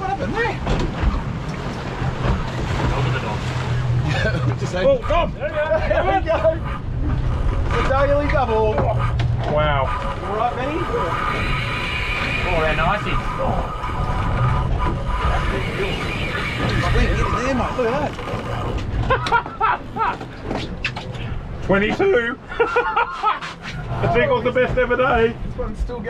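Waves splash against the hull of a moving boat.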